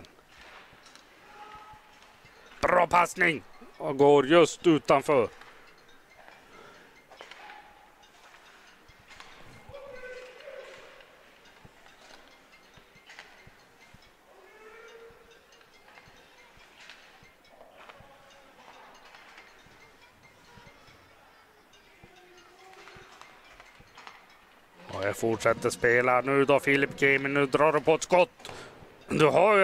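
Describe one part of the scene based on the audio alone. Skates scrape and swish across ice.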